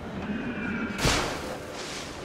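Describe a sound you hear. A heavy thud lands in snow.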